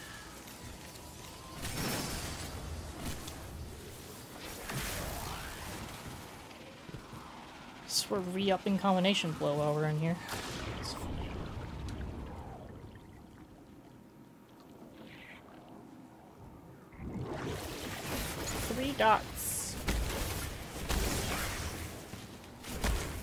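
Video game gunfire and blasts go off.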